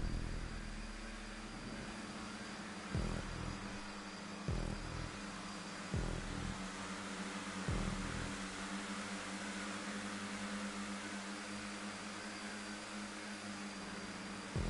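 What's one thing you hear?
Racing car engines roar steadily at high speed.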